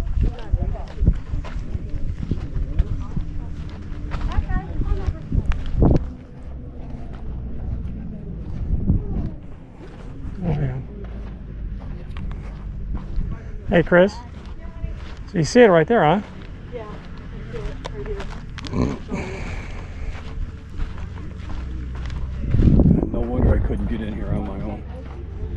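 Footsteps crunch on soft sand.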